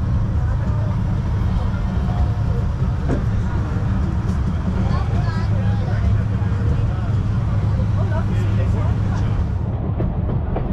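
A steam train rumbles and clatters along its track.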